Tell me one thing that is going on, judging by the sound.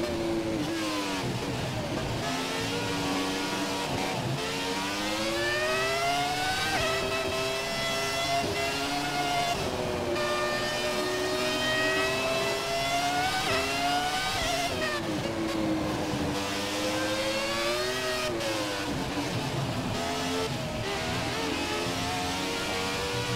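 A racing car engine screams, rising and falling in pitch as it shifts gears.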